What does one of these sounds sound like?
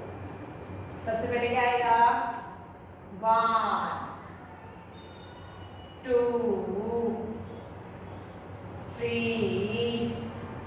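A woman speaks calmly, in short phrases, nearby.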